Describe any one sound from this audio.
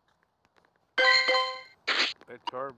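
A bright game jingle chimes with sparkly effects.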